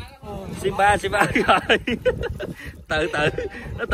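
Water splashes as a man thrashes beside a boat.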